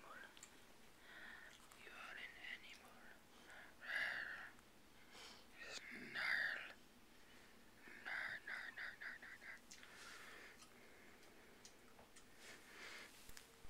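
A dog whines and grumbles up close in short, high bursts.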